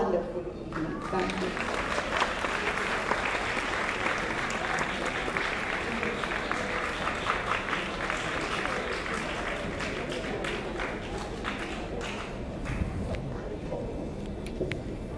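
An audience claps and cheers.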